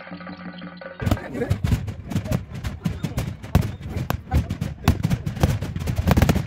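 Fireworks burst and crackle with sharp bangs.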